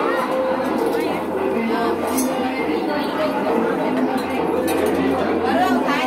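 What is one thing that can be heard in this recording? A dense crowd of men and women chatter loudly all around, close by.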